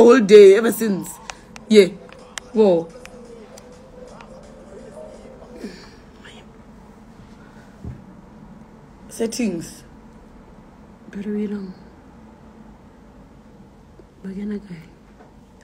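A young woman talks casually and close to a phone microphone, in short bursts with pauses.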